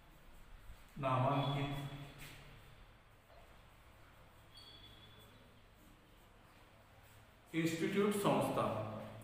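A man speaks aloud nearby, as if teaching.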